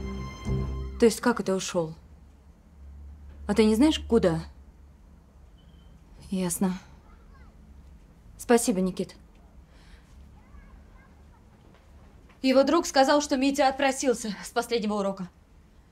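A woman speaks in a strained, upset voice close by.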